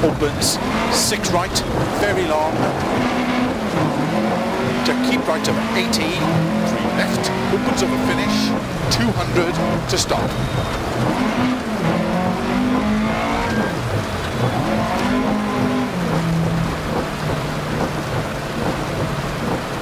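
A car engine revs hard, rising and falling in pitch with gear changes.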